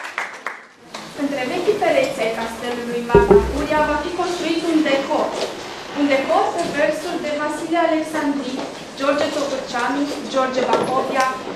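A young woman speaks clearly to an audience.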